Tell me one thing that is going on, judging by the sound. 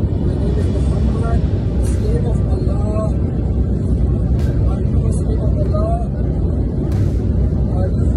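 A steady low engine hum fills the cabin.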